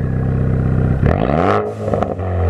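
A car engine revs sharply and then drops back.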